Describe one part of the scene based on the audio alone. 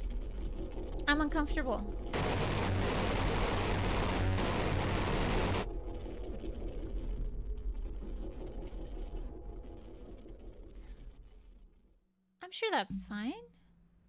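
A young woman speaks animatedly into a close microphone.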